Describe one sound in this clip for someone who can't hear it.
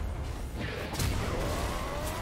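A magic blast bursts with a deep boom.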